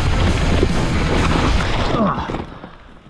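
Bike tyres rumble over a rough dirt trail.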